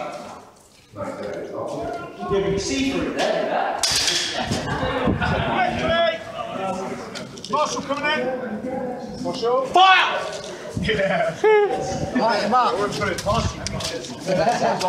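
A young man shouts calls to teammates in an echoing concrete underpass.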